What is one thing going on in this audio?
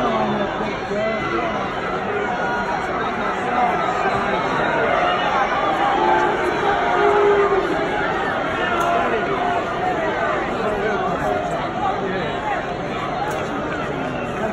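A large stadium crowd sings and chants loudly and steadily outdoors.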